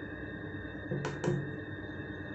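A finger clicks a push button.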